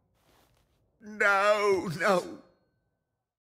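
A man screams out a long cry.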